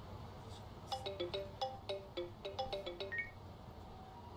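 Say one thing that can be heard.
A phone rings.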